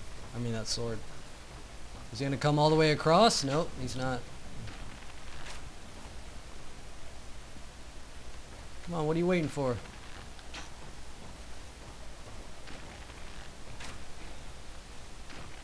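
Armoured footsteps thud on wooden planks.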